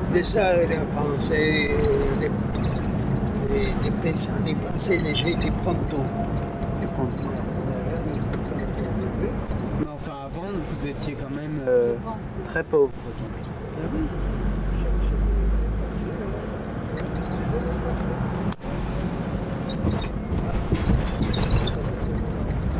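An elderly man talks close by.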